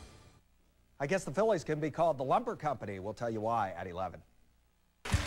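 A man speaks calmly and clearly into a microphone, like a news presenter.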